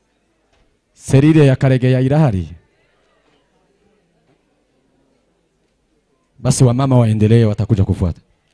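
A man speaks loudly and clearly nearby, in two short phrases.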